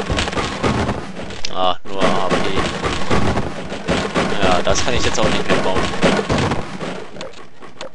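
Wooden crates splinter and break under crowbar blows.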